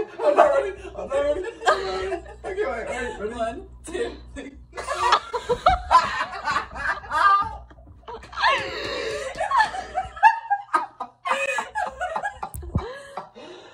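A young woman screams with laughter.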